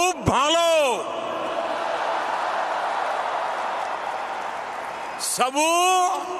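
A large crowd cheers and applauds in a huge echoing arena.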